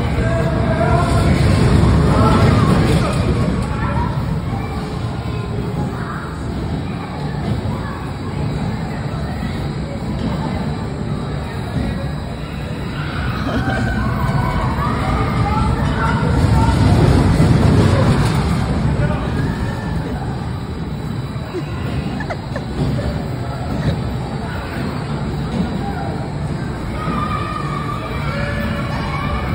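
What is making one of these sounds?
Riders on a roller coaster shriek and shout.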